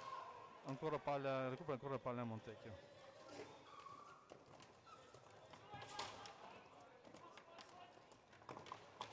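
Roller skate wheels roll and scrape across a hard floor.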